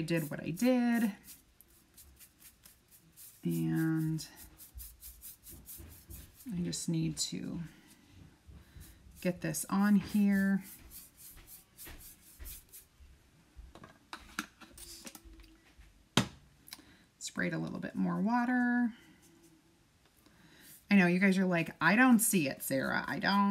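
A paintbrush dabs and scrapes across a board.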